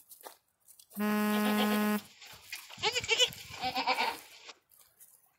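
A goat bleats loudly up close.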